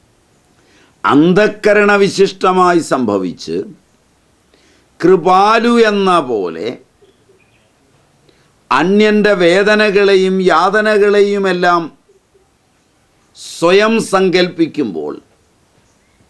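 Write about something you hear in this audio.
An elderly man speaks expressively close to a microphone, in bursts with pauses.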